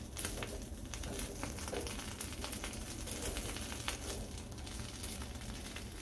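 Metal tongs clink against a metal grill.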